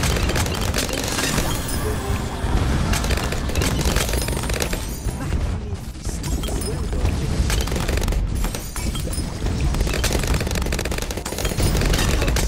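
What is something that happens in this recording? Explosions boom now and then.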